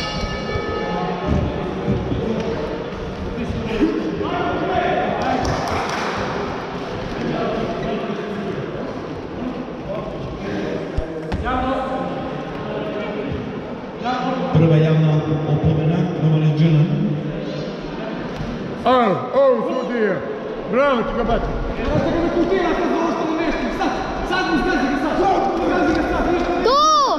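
A crowd of spectators talks and shouts throughout, echoing in a large hall.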